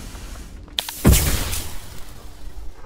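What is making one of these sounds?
Steam bursts out with a loud hiss.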